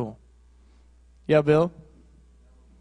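A man speaks briefly into a microphone over loudspeakers in a large echoing hall.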